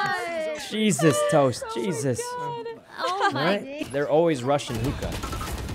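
A young woman laughs loudly through an online call.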